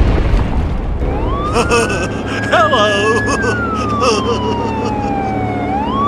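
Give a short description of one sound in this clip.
A toy ambulance siren wails, rising and falling.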